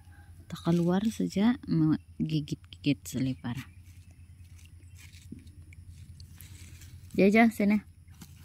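A puppy chews on a rubber sandal.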